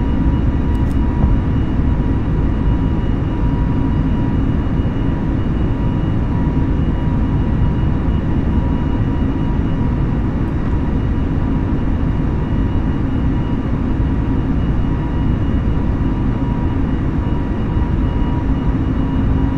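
Jet engines roar steadily as an airliner climbs.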